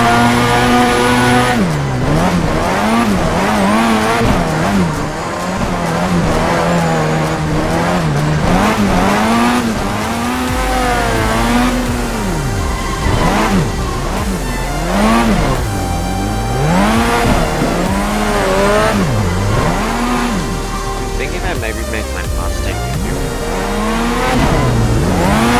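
A car engine revs hard, rising and falling over and over.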